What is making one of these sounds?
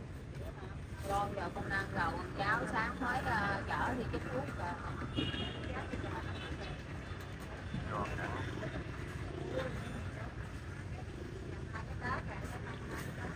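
Young children chatter close by.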